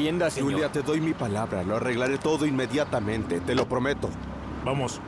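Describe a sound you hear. A man talks calmly outdoors.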